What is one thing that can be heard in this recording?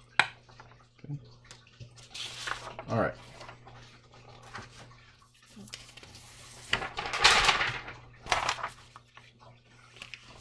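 Sheets of paper rustle and slide.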